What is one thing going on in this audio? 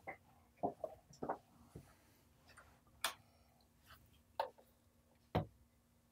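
A man turns knobs on a mixing desk with faint clicks.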